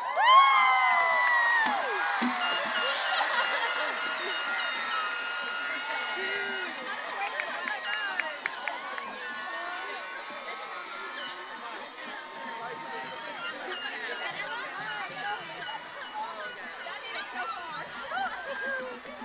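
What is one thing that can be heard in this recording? A large outdoor crowd of young people cheers, whoops and shouts excitedly.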